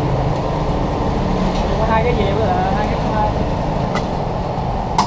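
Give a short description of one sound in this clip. Metal tongs clink against a metal grill.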